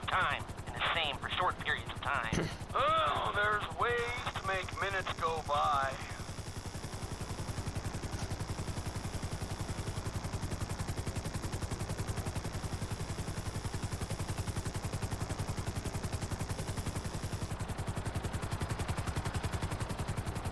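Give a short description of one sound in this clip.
A helicopter's rotor thumps in a fast, steady beat.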